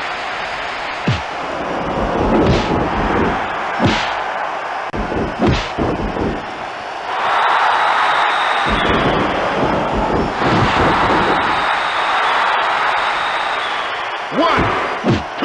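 Blows and body slams thud on the ring mat.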